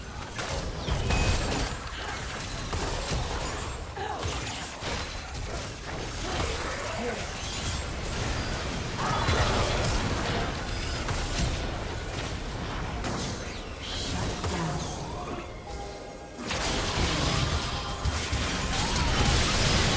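Fantasy spell effects crackle, whoosh and blast in a busy battle.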